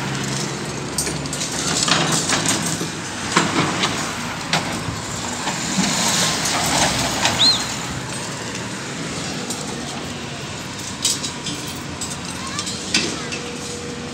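Concrete rubble knocks and crashes as an excavator breaks it.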